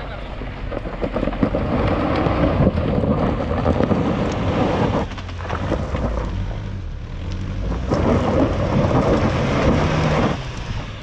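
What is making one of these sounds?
An engine revs hard as an off-road vehicle climbs a steep slope.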